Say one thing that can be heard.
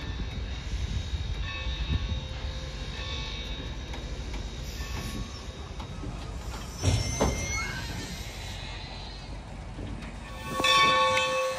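Railway cars rumble and clatter past on the tracks.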